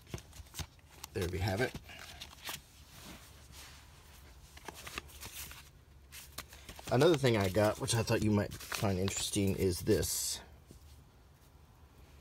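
Paper rustles as a booklet and an envelope are handled.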